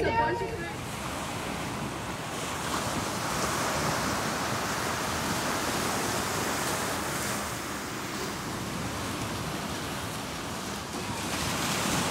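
Ocean waves break and wash steadily onto a sandy shore.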